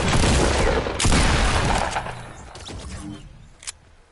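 Gunfire blasts loudly at close range.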